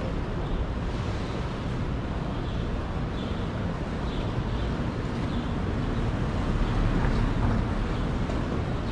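Outdoor city traffic rumbles steadily in the distance.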